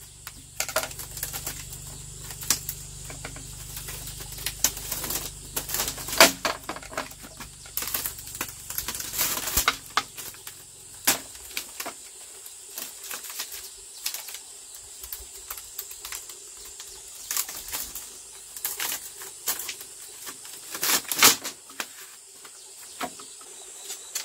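Bamboo strips clatter and rattle as they are woven together.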